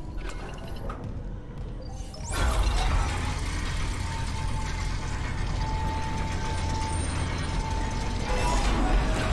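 Heavy metal boots clank on a metal floor.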